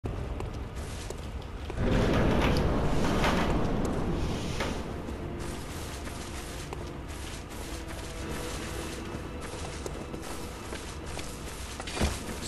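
Footsteps rustle quickly through dense flowers and grass.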